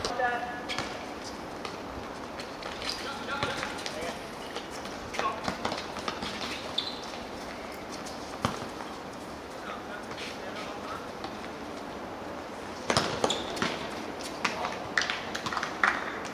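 A football thuds now and then as it is kicked on a hard outdoor court.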